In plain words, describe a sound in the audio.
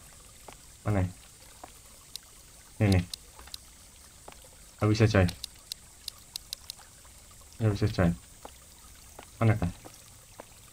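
A young man talks in short bursts close to a microphone.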